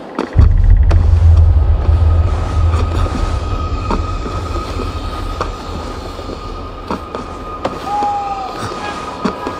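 A climber's hands grip and scrape against tree bark in short knocks.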